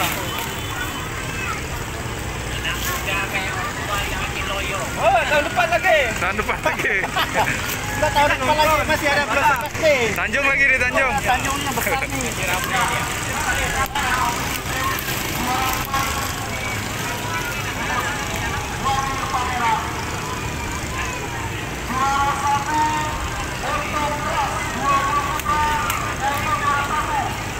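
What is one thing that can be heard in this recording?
A crowd of people chatters and calls out in the distance outdoors.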